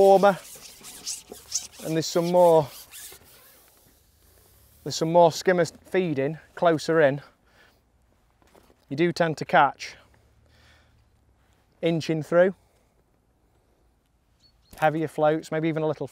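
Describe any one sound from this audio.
A young man talks calmly into a close microphone, in short bursts with pauses.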